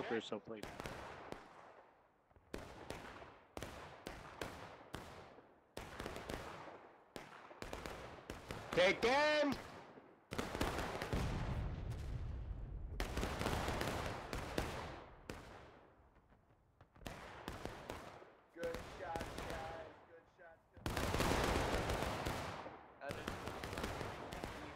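Rifles fire in rapid volleys, with crackling shots echoing through woods.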